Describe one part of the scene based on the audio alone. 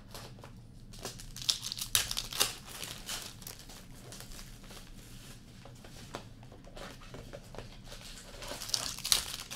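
Card packs crinkle and tear open close by.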